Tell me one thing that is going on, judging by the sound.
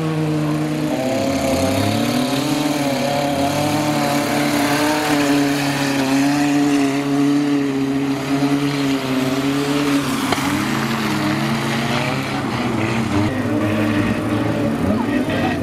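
Tyres churn and spin through mud.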